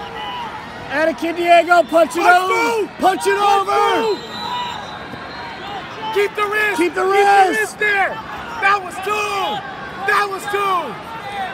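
Spectators shout loudly close by.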